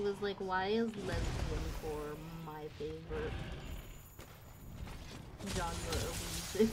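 Battle sound effects crash and rumble.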